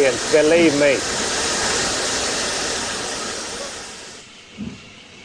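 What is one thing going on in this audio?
Steam hisses loudly from a locomotive.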